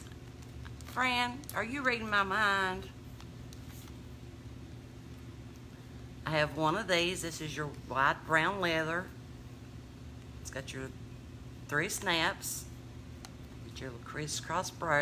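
A middle-aged woman talks animatedly close to the microphone.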